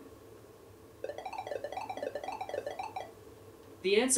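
A small robot makes warbling electronic beeps.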